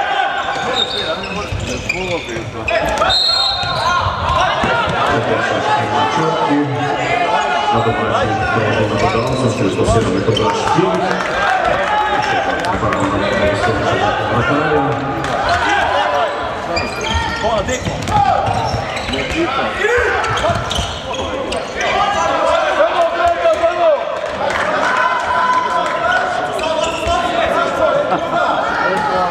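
A ball bounces on a wooden floor.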